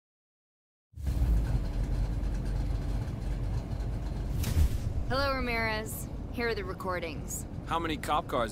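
A car engine idles with a deep rumble.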